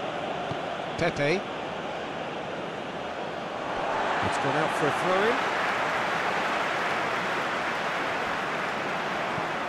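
A large stadium crowd roars steadily and swells louder partway through.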